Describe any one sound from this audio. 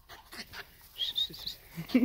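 A small dog whines and yelps excitedly up close.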